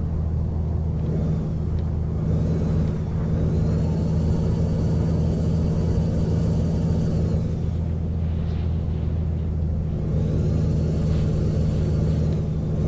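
A truck engine whines higher as it speeds up, then eases off.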